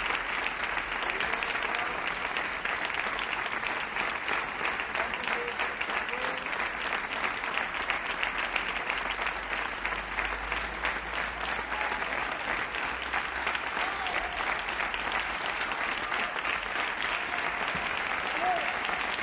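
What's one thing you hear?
A large crowd applauds steadily outdoors.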